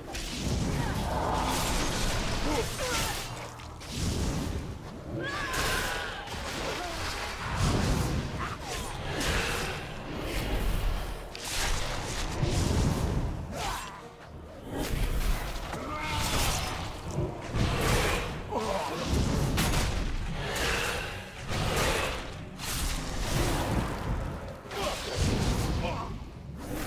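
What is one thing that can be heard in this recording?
Magic spells whoosh and crackle in a fierce fight.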